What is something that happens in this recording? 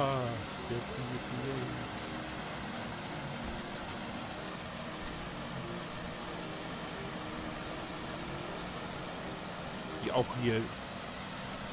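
A combine harvester engine rumbles steadily.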